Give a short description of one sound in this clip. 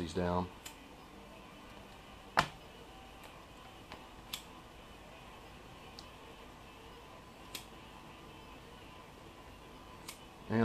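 Tile nippers snap small pieces off a tile with sharp clicks.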